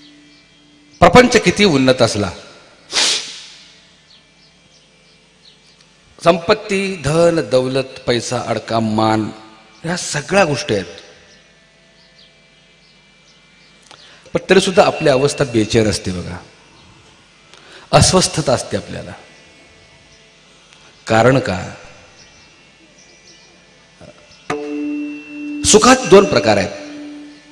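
A man speaks forcefully through a microphone in bursts, with pauses between phrases.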